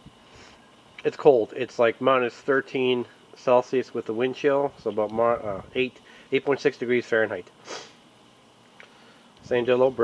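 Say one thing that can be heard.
Charcoal crackles faintly as it burns in a metal chimney.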